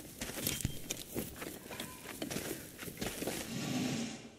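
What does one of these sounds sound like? Footsteps crunch on a rocky floor.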